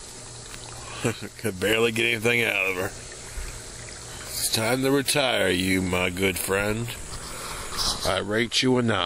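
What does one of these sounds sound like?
A man talks close up, slowly and with a low drawl.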